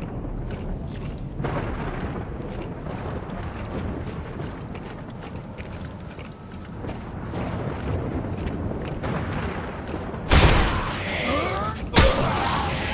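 Wind howls steadily through a snowstorm.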